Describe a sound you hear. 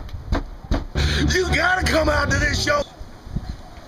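A young man speaks excitedly close by.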